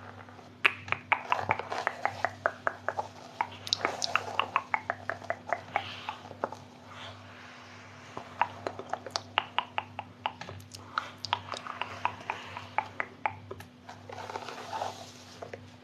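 A woman whispers softly close to a microphone.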